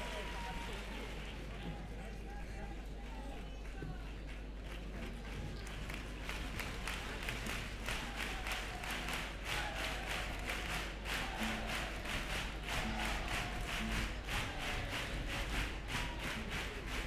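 A large group of men and women sings together in a large hall.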